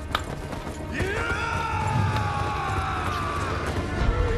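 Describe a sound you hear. A man lets out a loud rallying cry.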